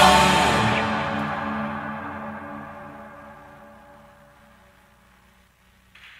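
Instruments sound a loud chord that slowly fades away.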